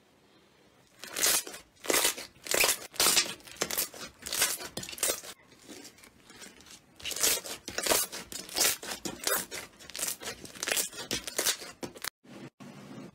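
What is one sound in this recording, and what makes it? Hands squish and fold thick slime, making crackling, squelching pops.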